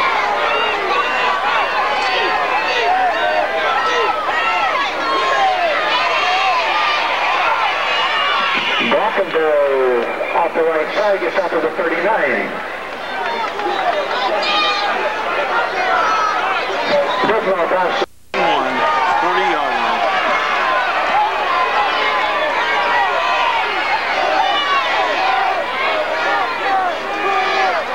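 A crowd of spectators chatters loudly outdoors.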